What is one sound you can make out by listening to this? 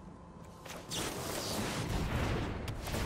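A magical whooshing burst sounds from a game.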